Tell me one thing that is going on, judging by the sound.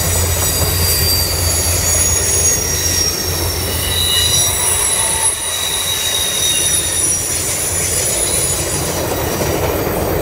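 A passenger train rumbles past close by on the tracks.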